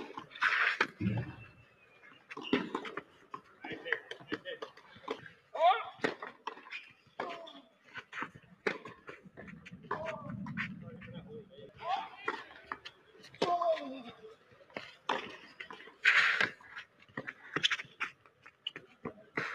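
A tennis racket strikes a ball outdoors.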